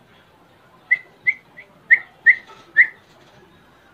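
Small birds chirp in short, sharp bursts close by.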